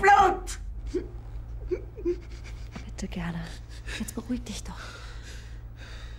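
A young woman sobs quietly.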